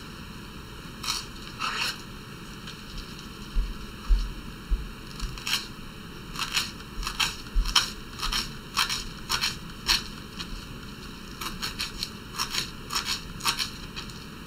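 A knife chops quickly on a wooden board.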